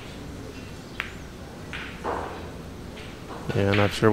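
Billiard balls knock together.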